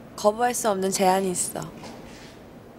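A young woman speaks brightly and cheerfully, close by.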